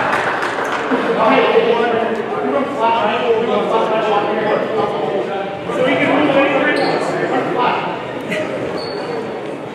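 A crowd chatters in a large echoing gym.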